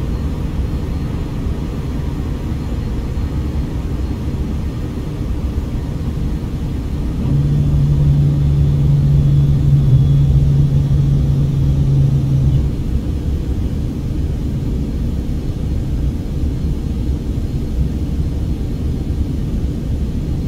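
Jet engines roar steadily from inside an airliner cabin in flight.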